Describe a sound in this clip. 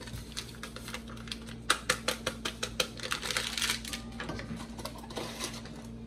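Hands crinkle and tear a paper wrapper.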